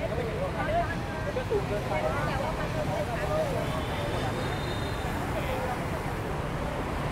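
Traffic rumbles steadily nearby.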